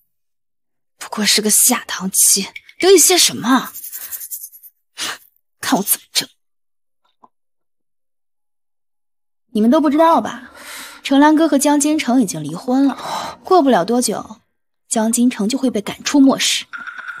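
A young woman speaks sharply and scornfully, close by.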